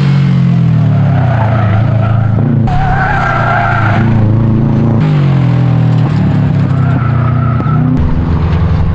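Car tyres screech as the car slides through a bend.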